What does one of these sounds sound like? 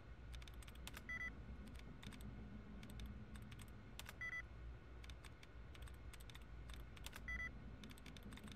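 A computer terminal gives short electronic beeps.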